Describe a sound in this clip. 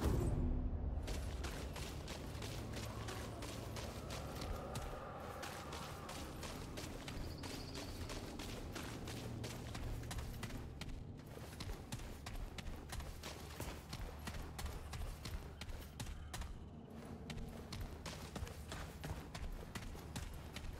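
Footsteps crunch quickly over dry ground and gravel.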